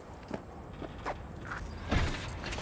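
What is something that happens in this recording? A car door unlatches and swings open.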